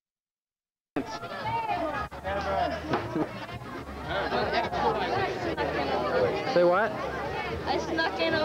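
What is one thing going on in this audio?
A large crowd of boys and men chatters outdoors.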